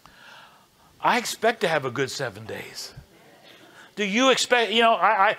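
A man speaks expressively through a microphone.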